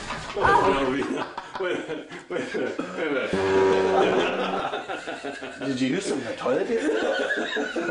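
A group of men laugh together in an echoing room.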